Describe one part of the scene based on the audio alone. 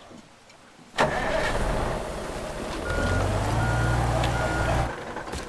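A heavy diesel crane truck's engine rumbles.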